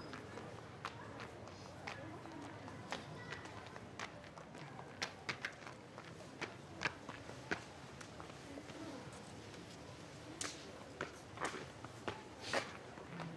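Wooden sandals clack slowly on stone paving.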